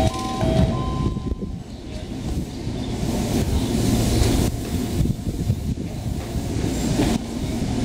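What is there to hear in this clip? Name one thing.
Passengers' footsteps patter on a platform.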